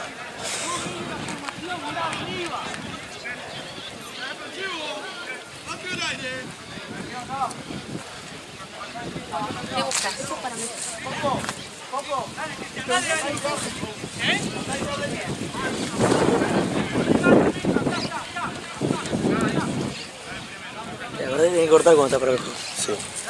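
Young men shout and call to each other outdoors.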